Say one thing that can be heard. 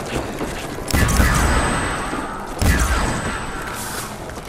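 A ray gun fires loud, crackling energy blasts.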